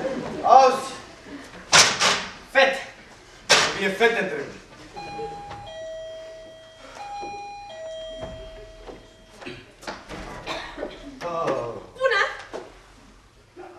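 A man speaks loudly and theatrically in an echoing hall.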